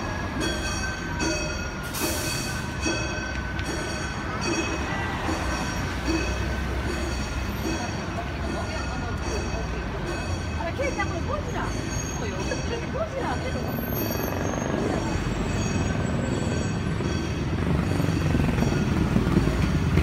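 Cars drive past on a city street.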